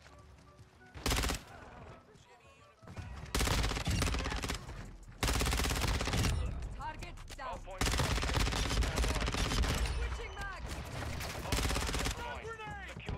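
Rapid gunfire bursts out in loud, quick volleys.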